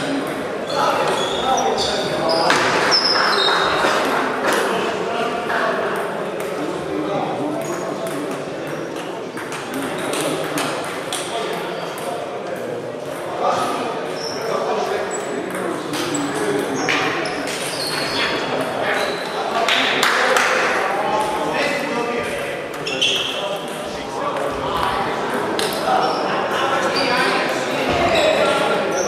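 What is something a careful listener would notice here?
Ping-pong balls tap sharply and quickly on tables and paddles in a large echoing hall.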